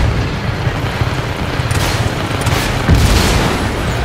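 A rocket launcher fires with a whoosh.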